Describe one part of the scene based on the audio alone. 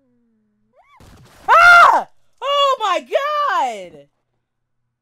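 A young man screams loudly and excitedly close to a microphone.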